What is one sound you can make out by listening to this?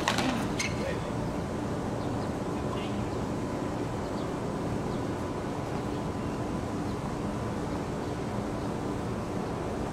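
Tennis rackets strike a ball back and forth.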